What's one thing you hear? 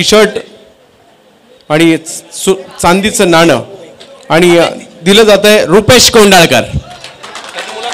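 A man speaks loudly through a microphone and loudspeakers.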